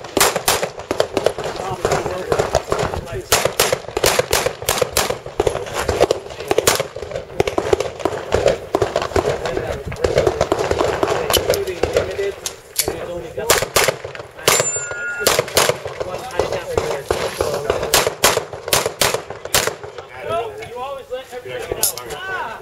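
A handgun fires rapid sharp shots outdoors.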